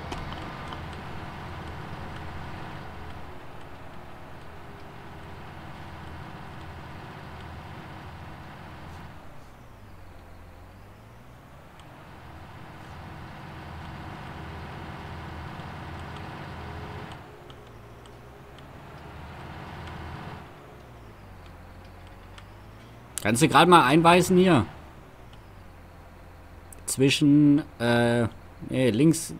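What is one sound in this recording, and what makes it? A tractor engine hums steadily, rising and falling as it drives.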